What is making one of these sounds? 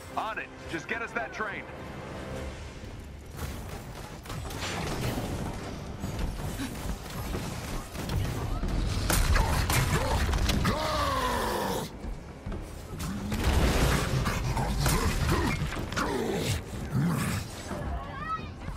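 Explosions boom and crash repeatedly.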